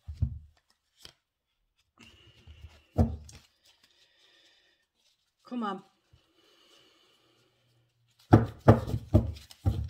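A middle-aged woman speaks softly and slowly, close by.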